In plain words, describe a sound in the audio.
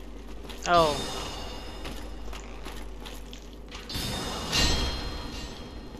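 Sword blows clang and ring out.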